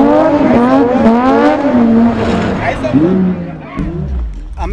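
A car engine revs hard and roars.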